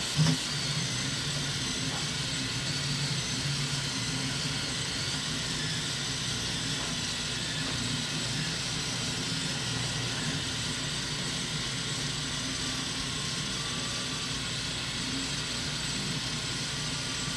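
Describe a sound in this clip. A 3D printer's motors whir and buzz in shifting tones as the print head moves.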